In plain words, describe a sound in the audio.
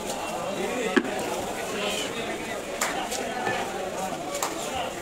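A heavy knife chops with sharp thuds on a wooden block.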